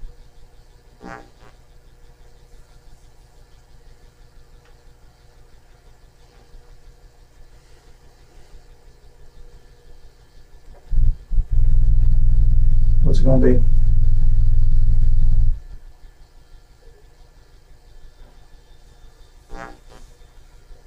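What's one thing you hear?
A man speaks a few brief words, quietly and from a distance.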